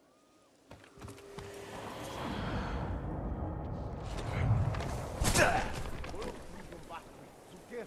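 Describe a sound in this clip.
Tall grass rustles as someone runs through it.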